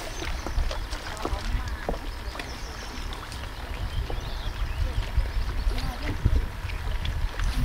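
A river flows and splashes nearby.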